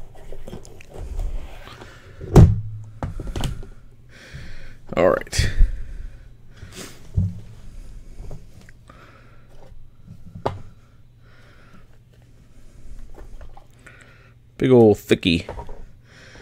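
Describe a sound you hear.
Hard plastic cases clack and knock against a hard case.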